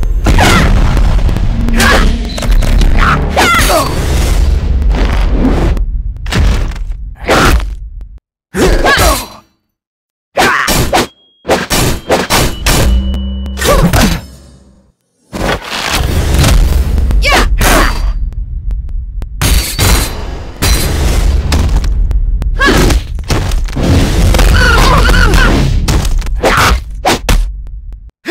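Blades swing and strike in a fast fight, with sharp hits and whooshes.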